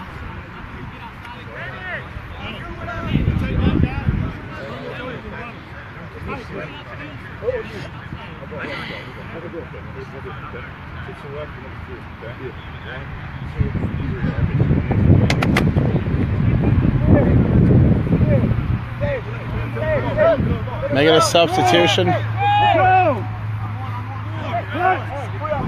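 Young men talk and call out to each other outdoors.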